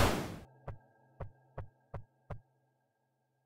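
Footsteps tap in a quick, even rhythm.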